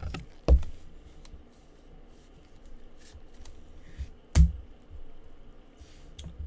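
Cards and cardboard packaging tap and rustle under handling hands.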